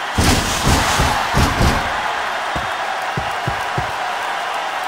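Heavy footsteps thud on a hollow floor.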